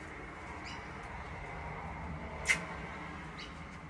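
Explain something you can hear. A man crunches a crispy snack.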